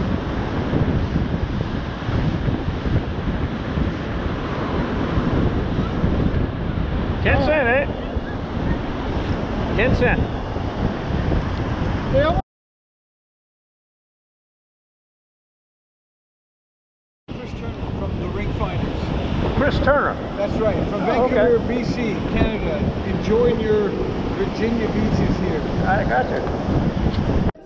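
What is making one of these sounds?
Wind rumbles loudly close by.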